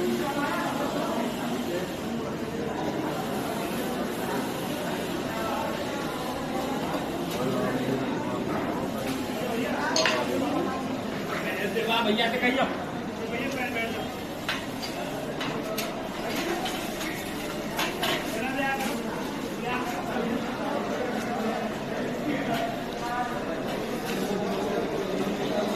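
People talk in a murmur in a large echoing hall.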